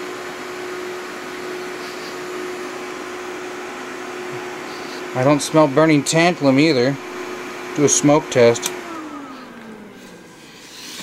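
A cooling fan in electronic equipment hums steadily, then winds down and stops.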